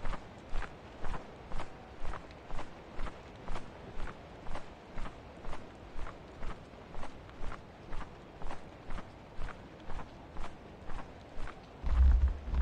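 Footsteps thud steadily on stone.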